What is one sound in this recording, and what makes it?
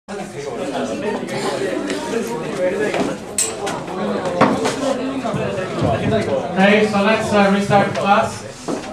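A man talks steadily, as if giving a lecture, in a room with some echo.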